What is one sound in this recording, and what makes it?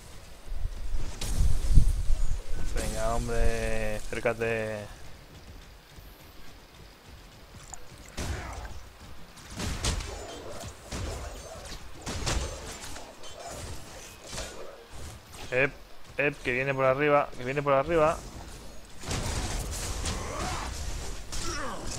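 Energy blasts crackle and boom.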